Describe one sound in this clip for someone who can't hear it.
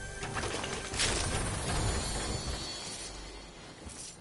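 A treasure chest bursts open with a bright chime.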